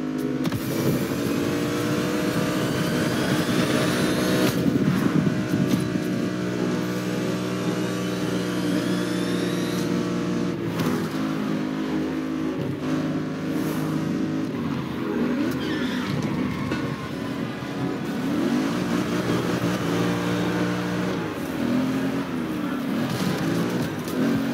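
A sports car engine roars at high speed and then drops to a lower rumble.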